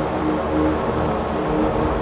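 Waves wash onto a pebble beach.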